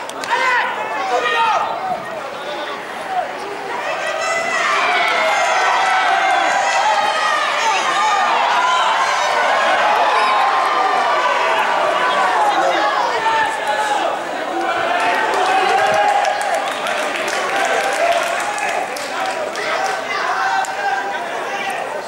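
Several men shout to each other across an outdoor field.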